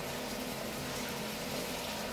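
Liquid trickles from a can and splashes into a sink.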